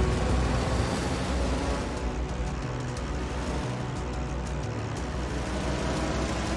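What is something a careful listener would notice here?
Aircraft engines drone steadily overhead.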